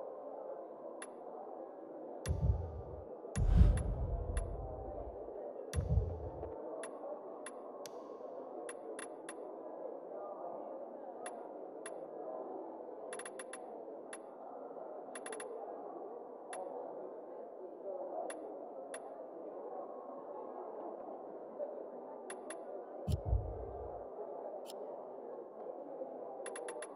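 Menu selections click softly, in short quick ticks.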